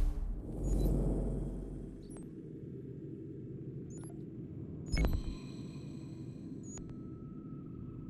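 Soft menu clicks blip now and then.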